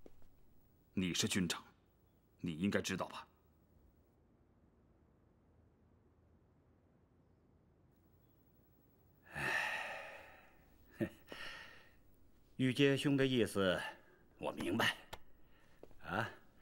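A younger man answers in a low, respectful voice.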